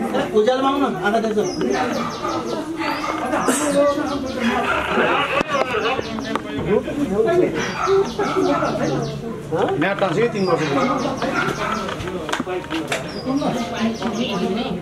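Men talk with each other close by, in overlapping voices.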